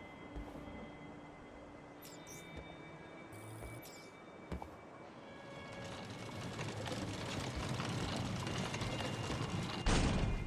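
A heavy cart scrapes and rolls across a wooden floor.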